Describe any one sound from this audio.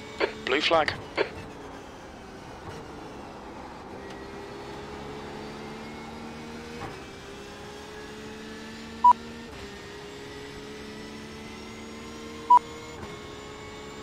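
A race car engine drones steadily, its pitch climbing through the gears and dropping at each shift.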